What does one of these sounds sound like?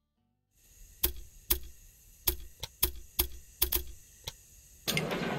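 Short, sharp clicks sound one after another.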